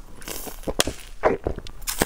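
A young woman gulps a drink from a plastic bottle close to a microphone.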